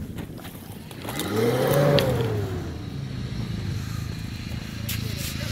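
An off-road vehicle's engine revs up and then settles.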